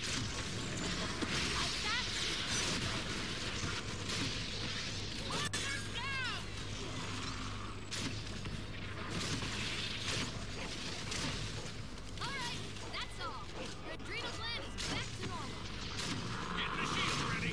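A futuristic gun fires crackling energy bursts again and again.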